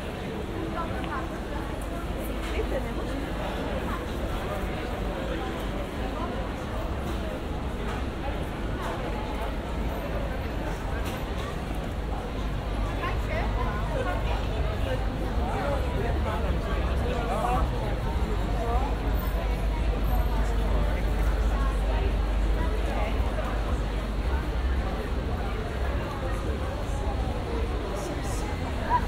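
Footsteps of many people shuffle on paving stones.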